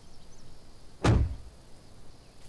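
A car door slams shut with a dull thud.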